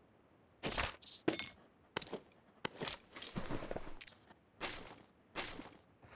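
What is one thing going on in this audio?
Items are picked up with short clicks.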